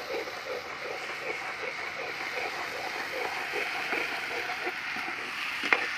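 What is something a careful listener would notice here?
A metal spoon stirs and scrapes against a pan in a steady rhythm.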